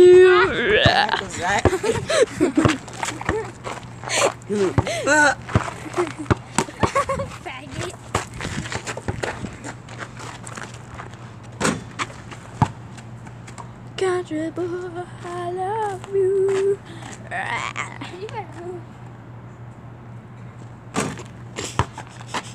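A basketball bounces on hard dirt with dull thuds.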